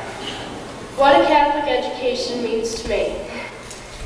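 A young woman speaks into a microphone over loudspeakers in an echoing hall.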